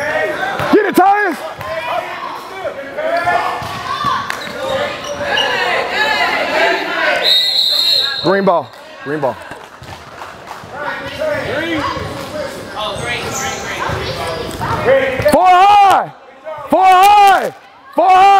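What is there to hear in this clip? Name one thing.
Children shout and call out across a large echoing gym.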